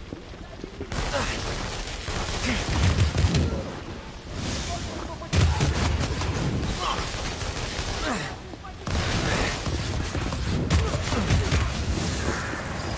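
Energy blasts crackle and boom in a fight.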